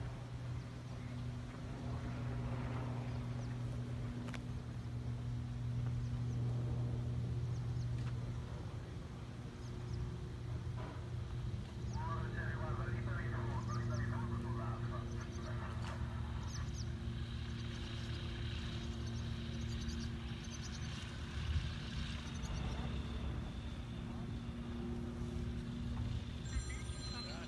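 Wind blows across open ground outdoors.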